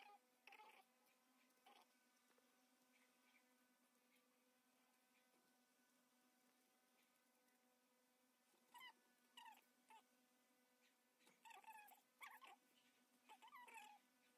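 A knife scrapes and slices the peel off a firm fruit in short strokes.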